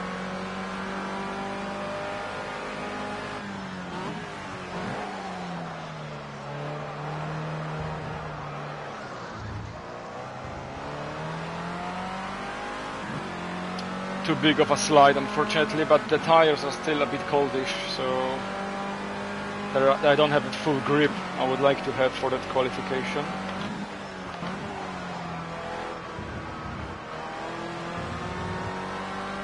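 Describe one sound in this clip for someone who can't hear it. A racing car engine drones steadily, its pitch rising and falling with gear changes.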